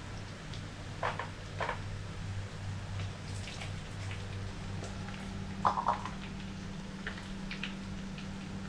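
A baby monkey squeaks in short high calls.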